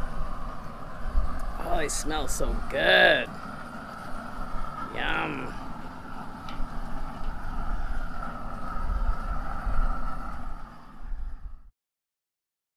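A gas torch roars steadily with a rushing hiss.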